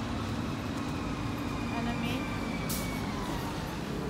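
A bus drives past close by.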